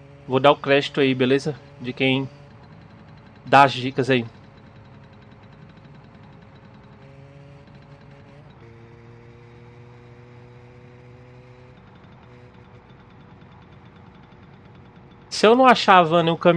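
A small motorbike engine hums steadily.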